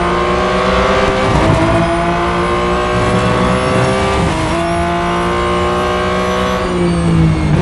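A racing car engine roars loudly, climbing in pitch through quick gear shifts.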